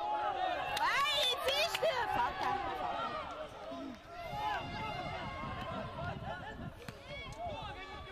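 A crowd of spectators calls out and cheers from close by.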